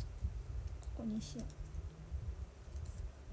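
A young woman says a few words softly, close by.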